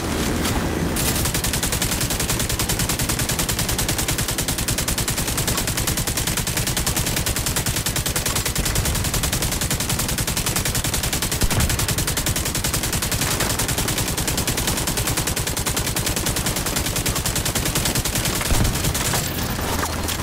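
A rifle fires in rapid, steady bursts.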